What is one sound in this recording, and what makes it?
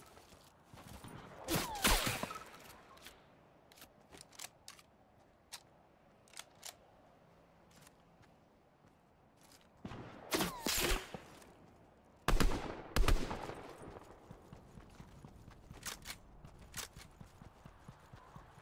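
Quick footsteps thud on grass.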